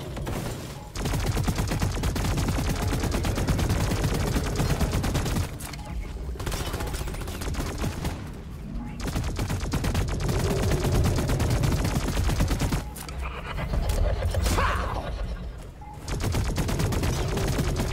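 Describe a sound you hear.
Automatic gunfire rattles rapidly in bursts.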